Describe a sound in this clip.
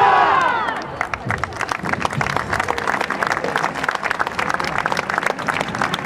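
A large crowd applauds with steady clapping.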